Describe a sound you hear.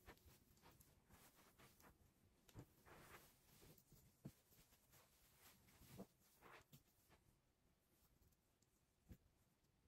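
Fabric rustles and swishes as a cloth is handled and shaken.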